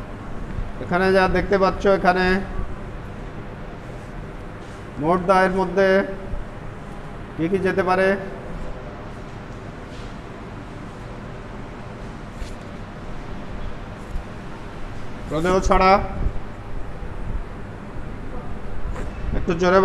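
A young man speaks in short bursts nearby.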